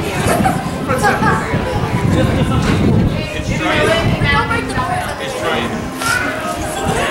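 Teenagers talk and chatter nearby outdoors.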